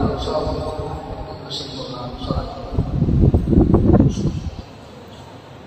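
A man chants into a microphone, heard through loudspeakers in a large echoing hall.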